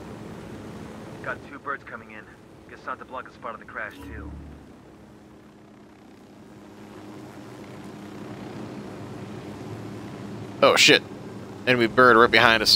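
A helicopter engine hums and its rotor whirs steadily.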